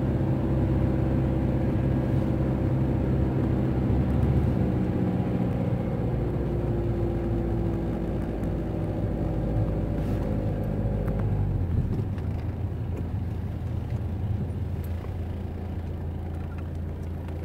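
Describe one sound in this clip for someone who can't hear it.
A car engine hums steadily and low.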